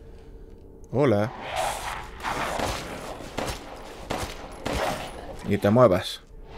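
A pistol fires several loud shots.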